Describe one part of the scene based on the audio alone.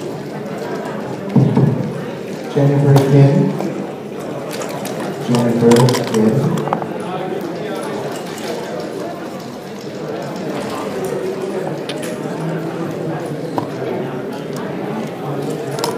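Game pieces click against each other and tap on a board.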